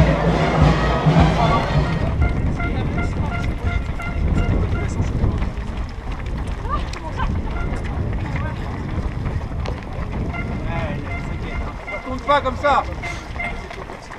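Many runners' footsteps patter on asphalt.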